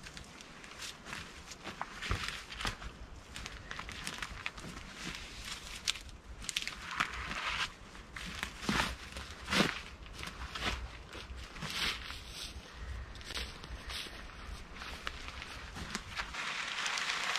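Footsteps crunch on dry ground and twigs.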